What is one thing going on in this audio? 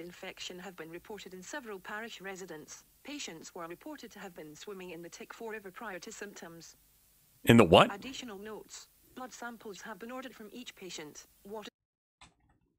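A young man reads aloud calmly into a microphone.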